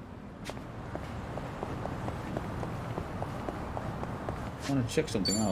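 Quick footsteps patter on pavement.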